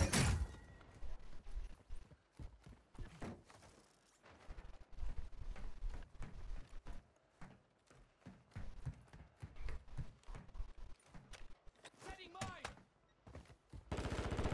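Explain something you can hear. Footsteps patter quickly on a hard surface.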